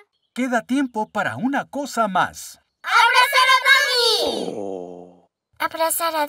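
Young children cheer and shout happily together.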